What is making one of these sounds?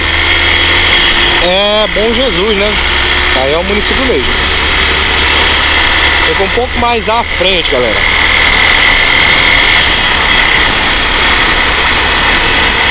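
A motorcycle engine hums steadily.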